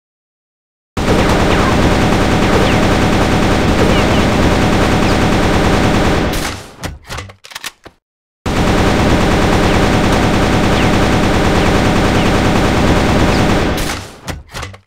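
A rifle fires rapid bursts with loud, sharp shots.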